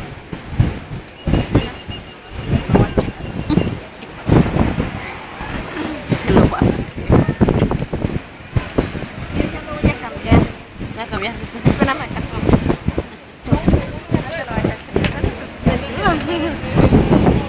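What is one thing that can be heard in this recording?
People chatter nearby outdoors.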